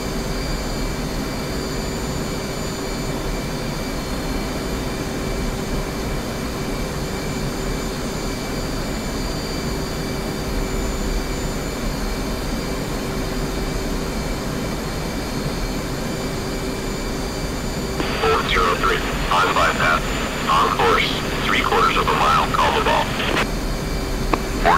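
A jet engine rumbles steadily.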